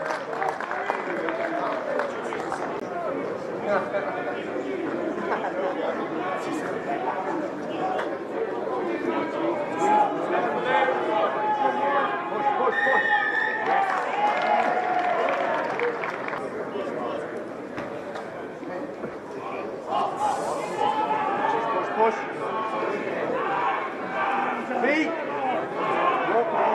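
Men shout to one another across an outdoor pitch.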